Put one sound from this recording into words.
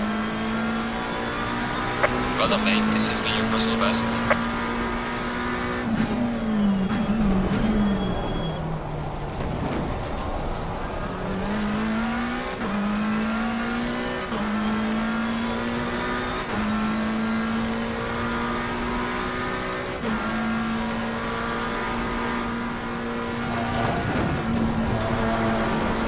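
A racing car engine roars steadily, dropping in pitch when braking and rising through the gears.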